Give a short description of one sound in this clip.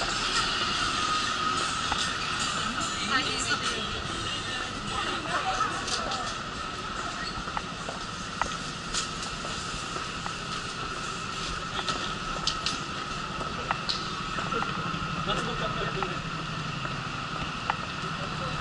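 Street noise hums steadily outdoors.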